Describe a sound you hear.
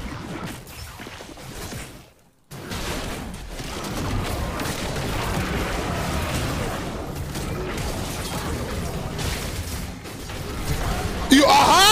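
Video game spell and combat effects crackle and clash.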